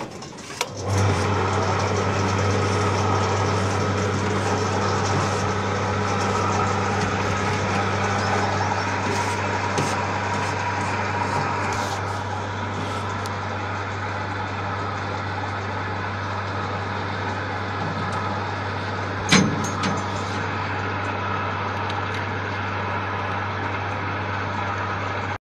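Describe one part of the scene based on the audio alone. A crane's winch motor starts and hums steadily, close by.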